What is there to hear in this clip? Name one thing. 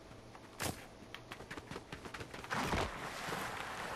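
A large club swings with a whoosh.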